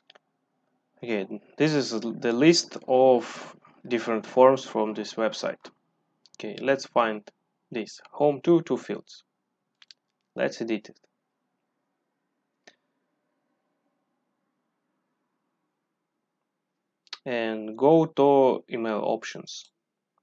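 A young man talks calmly and closely into a microphone, in bursts with pauses.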